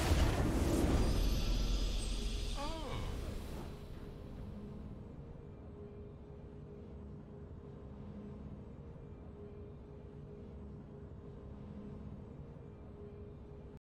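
A short triumphant fanfare plays, then settles into soft, steady music.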